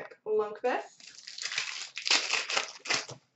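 Plastic wrappers rustle and crinkle as card packs are handled.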